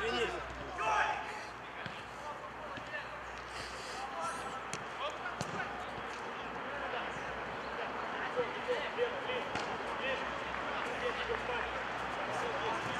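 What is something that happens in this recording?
Young men shout to each other from across an open-air pitch.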